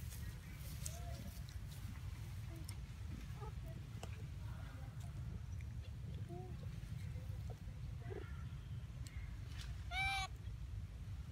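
A young monkey squeaks in short, high chirps.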